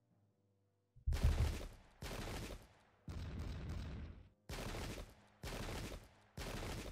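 Musket volleys crackle and roar in repeated bursts.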